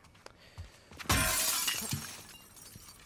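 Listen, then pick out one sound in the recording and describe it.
A window pane shatters with a crash of breaking glass.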